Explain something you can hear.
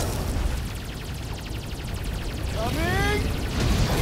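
Spaceship cannons fire bursts of shots.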